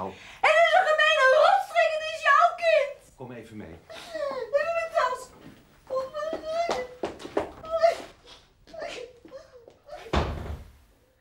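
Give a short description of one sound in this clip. A middle-aged woman speaks tearfully, her voice breaking.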